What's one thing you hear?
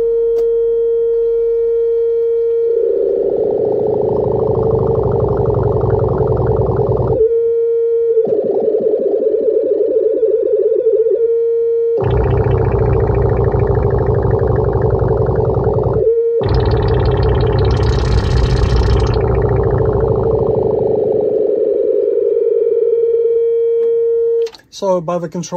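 A synthesizer drones on a steady low tone.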